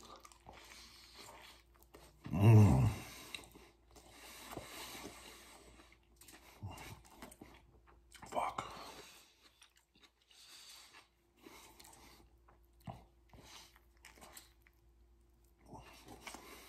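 A man chews food noisily.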